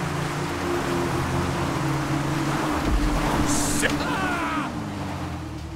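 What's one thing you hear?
Several motorbike engines rev and whine loudly.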